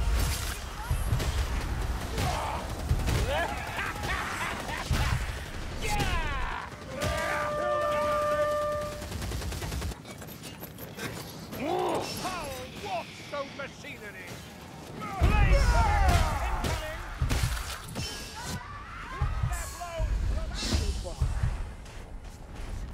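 Creatures shriek and growl.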